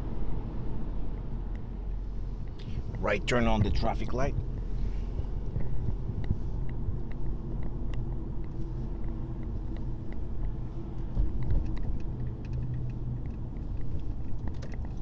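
A car engine hums and tyres rumble steadily on a wet road.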